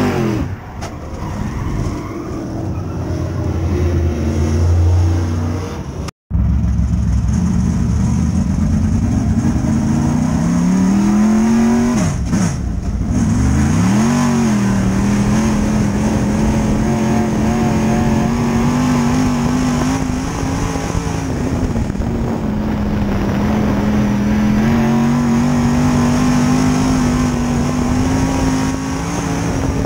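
A race car engine roars loudly close by, revving up and down.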